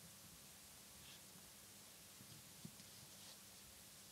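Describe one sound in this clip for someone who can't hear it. Paper rustles close by.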